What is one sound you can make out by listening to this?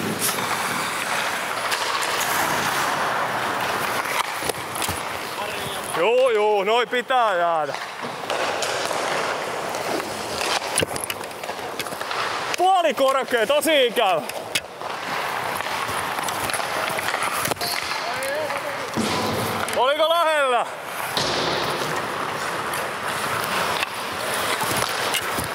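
Hockey pucks smack off sticks and the boards.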